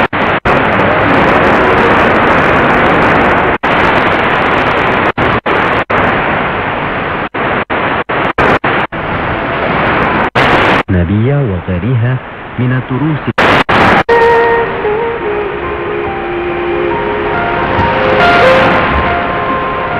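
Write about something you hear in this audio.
Radio static hisses loudly, cutting out abruptly again and again.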